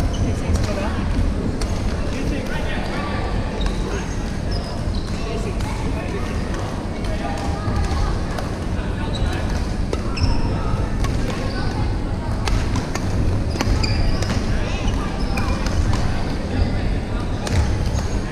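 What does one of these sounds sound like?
Young women call out and chatter across the hall.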